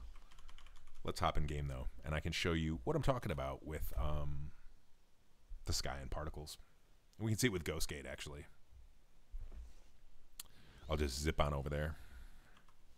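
A man talks calmly and close into a microphone, in short bursts.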